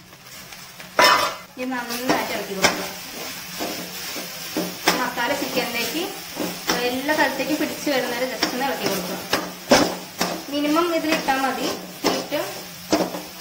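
A metal spatula scrapes and clatters against a metal pan.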